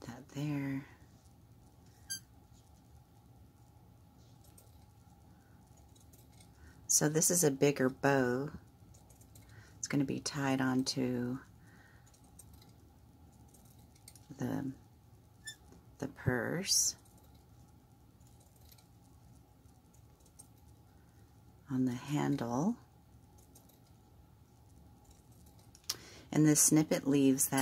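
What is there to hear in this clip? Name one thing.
Scissors snip through lace.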